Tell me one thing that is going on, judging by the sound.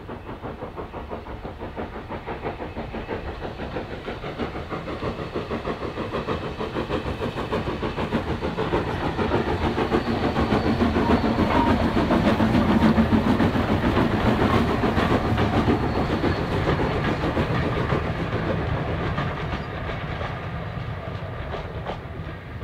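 A steam tank locomotive chuffs past hauling coaches, its beat growing louder and then fading.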